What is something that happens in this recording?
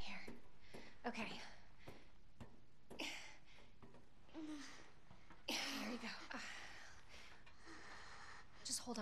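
A young woman speaks softly and reassuringly, close by.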